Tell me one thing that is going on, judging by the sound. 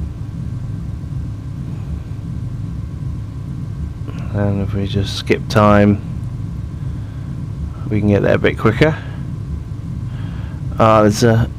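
A jet engine roars with a steady low drone.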